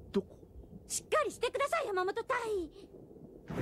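A woman asks something in a dazed voice.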